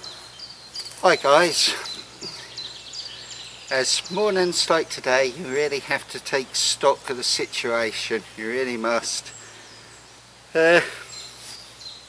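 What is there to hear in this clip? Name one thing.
A man speaks calmly and close by, outdoors.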